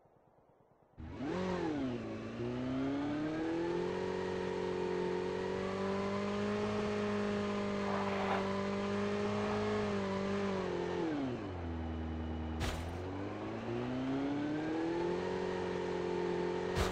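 A motorbike engine revs loudly and roars along, rising and falling in pitch.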